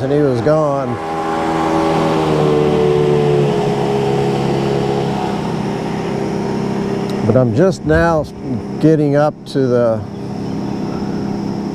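A motorboat engine hums steadily in the distance.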